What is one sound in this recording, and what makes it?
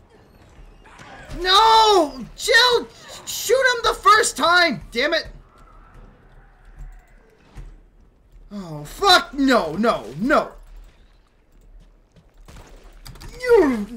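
A young man shouts and talks excitedly into a microphone.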